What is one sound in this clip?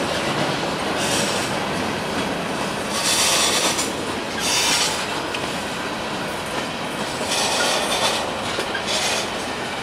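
Metal wheels squeal and screech against the rails now and then.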